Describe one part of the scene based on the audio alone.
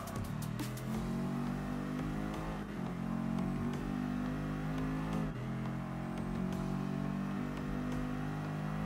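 A racing car engine roars, rising in pitch and dropping briefly at each gear change.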